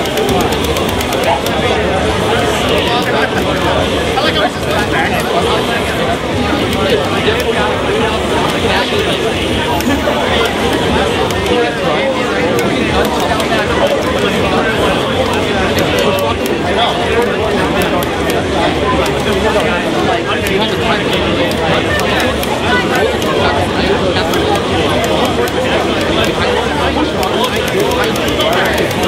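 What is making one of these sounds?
A crowd of spectators chatters and cheers.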